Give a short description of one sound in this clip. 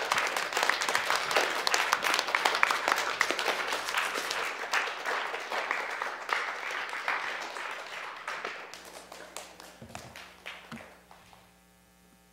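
A group of people applauds and cheers.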